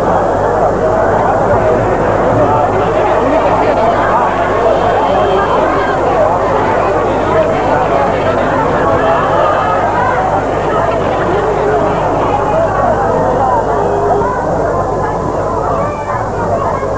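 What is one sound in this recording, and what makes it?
A crowd of people chatters and murmurs nearby.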